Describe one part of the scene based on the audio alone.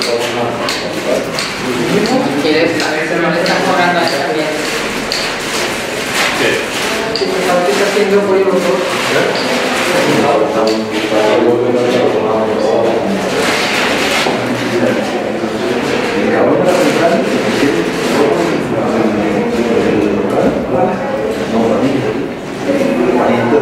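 A man speaks calmly in a room with some echo.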